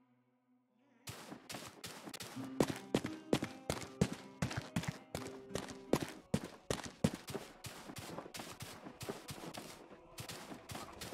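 Quick footsteps patter over the ground.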